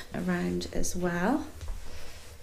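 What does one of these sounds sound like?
A woman speaks briefly and close by.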